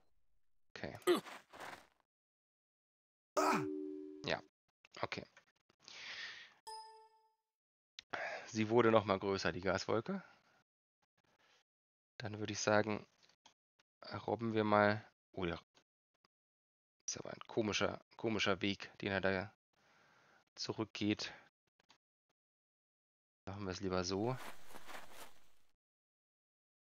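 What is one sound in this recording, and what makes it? A man talks with animation into a close microphone, with pauses.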